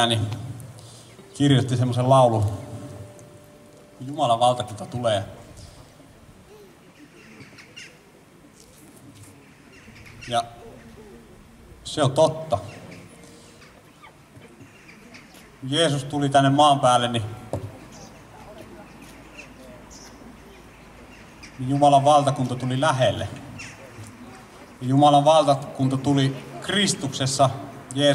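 A man sings through a microphone and loudspeakers outdoors.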